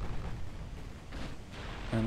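Heavy naval guns boom over open water.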